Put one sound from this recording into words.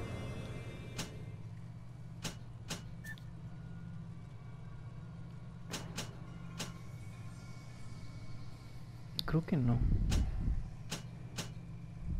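Menu buttons click sharply, one at a time.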